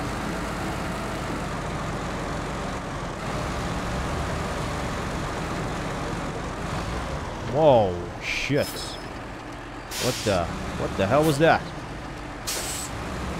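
A heavy truck engine rumbles steadily as it grinds along.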